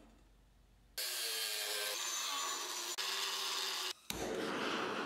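An angle grinder whines as it cuts through steel.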